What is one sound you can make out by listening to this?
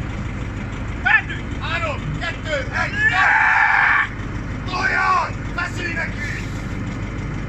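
Men shout loudly outdoors, cheering someone on.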